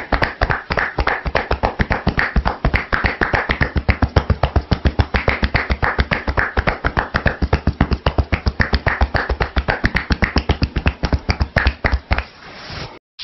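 Hands rapidly tap and pat on a head in a fast, even rhythm.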